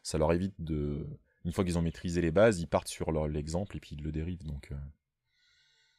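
A middle-aged man talks calmly and close to a microphone.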